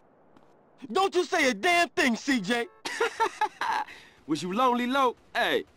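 A man speaks with animation, close by.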